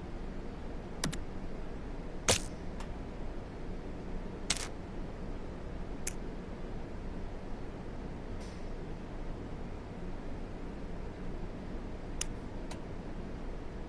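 Small metal objects click and clatter as they are picked up and set down.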